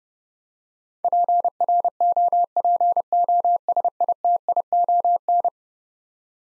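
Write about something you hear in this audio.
A Morse code key taps out a rapid string of steady beeps.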